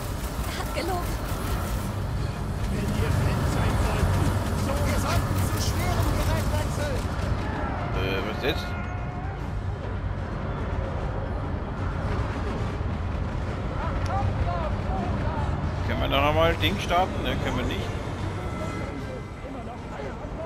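A low rumble of battle noise rolls on steadily.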